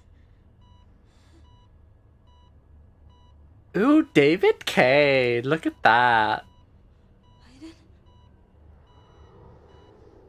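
A heart monitor beeps steadily.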